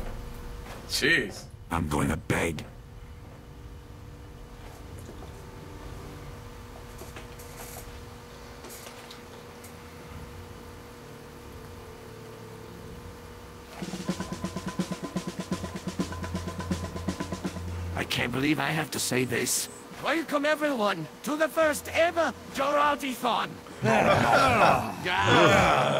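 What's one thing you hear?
A middle-aged man talks close to a microphone.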